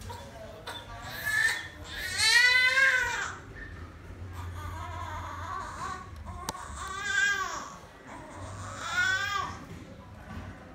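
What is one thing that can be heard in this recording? A baby cries in short high wails.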